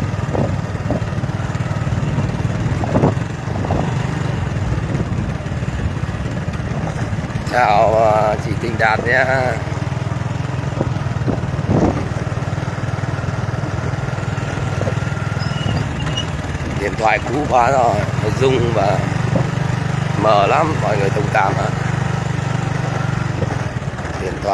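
A motorcycle engine hums as it rides along.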